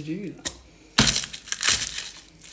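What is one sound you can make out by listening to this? A garlic bulb crunches loudly under a pressing hand.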